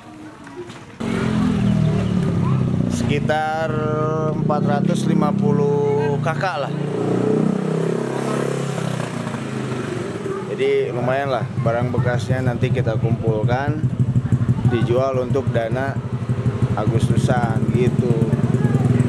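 A middle-aged man speaks close to the microphone.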